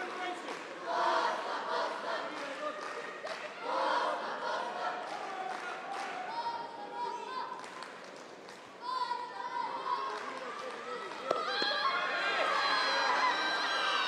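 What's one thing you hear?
A young woman shouts sharply.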